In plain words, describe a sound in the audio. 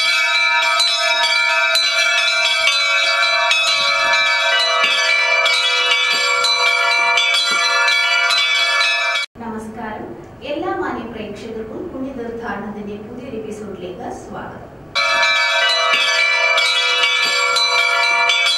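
Bells chime in a steady ringing melody.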